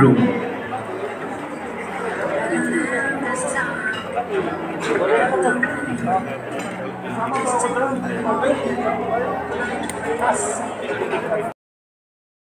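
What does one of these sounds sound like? A crowd murmurs and chatters in a large room.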